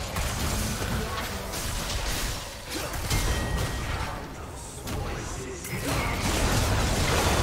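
Spell effects whoosh and burst in a fast-paced fight.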